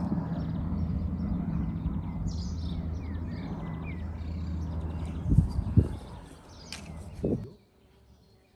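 Wind blows hard against the microphone outdoors.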